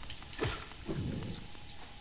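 A blade slashes with a sharp swish.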